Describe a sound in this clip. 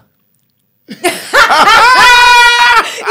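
A young woman laughs loudly close to a microphone.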